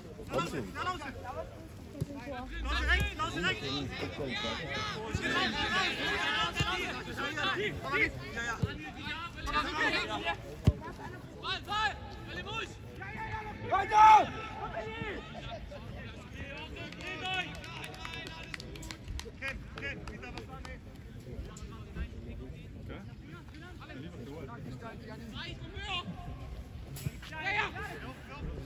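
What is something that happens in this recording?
Young men shout and call out across an open football pitch outdoors.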